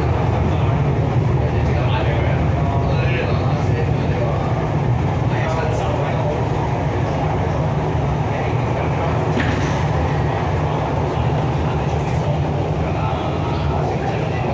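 An electric commuter train rumbles along the track at speed, heard from inside the carriage.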